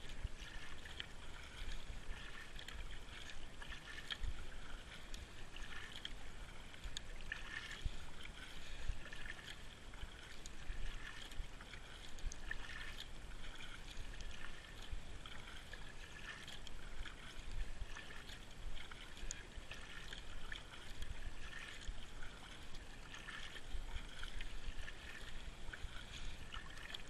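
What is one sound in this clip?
A paddle splashes and dips into calm water in a steady rhythm.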